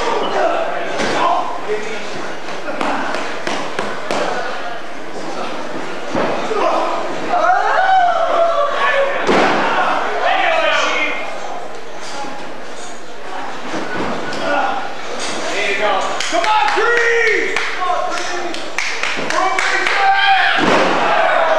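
Bodies slam onto a wrestling ring mat with loud thuds.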